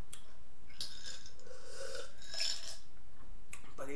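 A woman gulps a drink.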